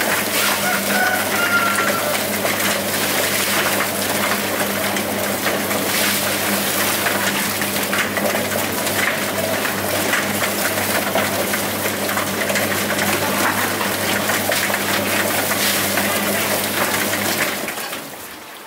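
A plucking machine drum spins with a loud, steady whirring hum.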